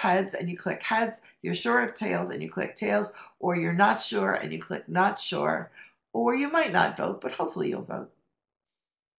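A woman talks calmly through a microphone on an online call.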